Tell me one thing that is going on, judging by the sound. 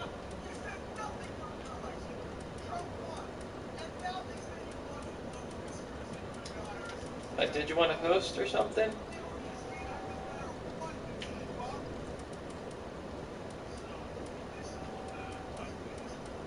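Soft menu clicks tick as a selection moves.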